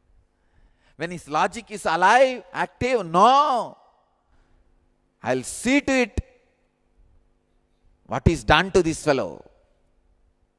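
A young man speaks with animation into a close microphone, in short bursts with pauses.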